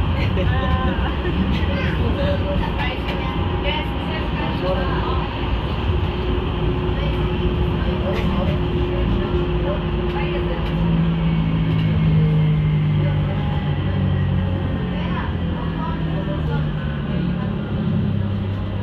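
A vehicle engine hums and its tyres roll steadily along a street.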